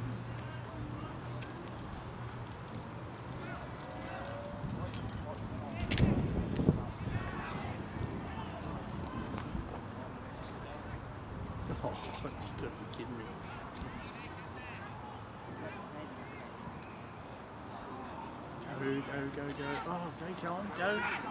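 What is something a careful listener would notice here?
Young men shout and call out to one another across an open field.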